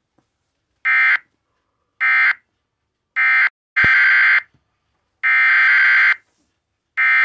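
An electronic alert tone sounds in loud, short repeated bursts.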